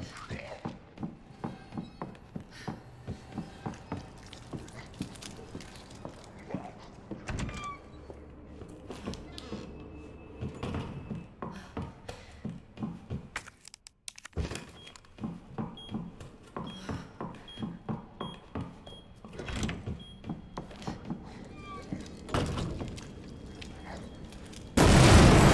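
Footsteps thud steadily on wooden floorboards.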